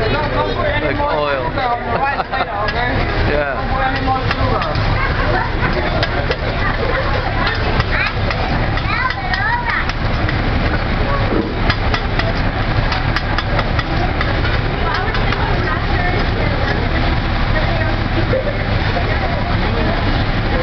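Metal spatulas scrape and clatter on a hot griddle.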